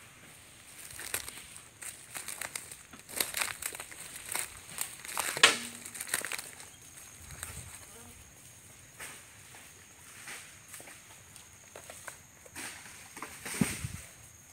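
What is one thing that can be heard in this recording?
A wooden cart rattles and bumps as it rolls over rough ground.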